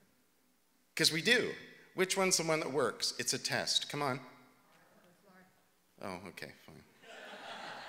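A middle-aged man speaks with animation into a microphone in a large room.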